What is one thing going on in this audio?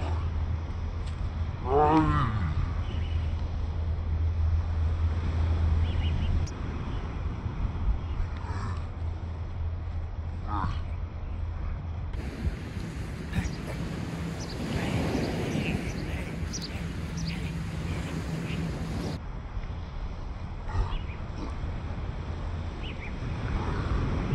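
Outdoor wind rushes steadily.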